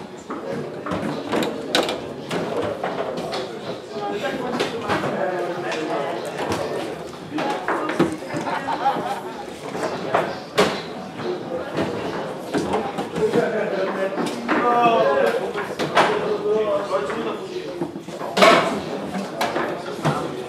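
A ball clacks against the rods and sides of a foosball table.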